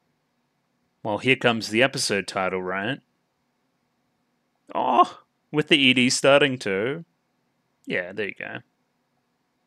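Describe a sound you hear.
A young man talks casually into a nearby microphone, in short bursts.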